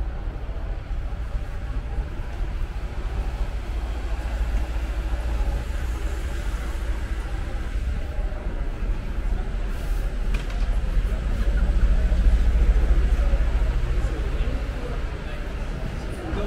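A bus engine idles at the kerb.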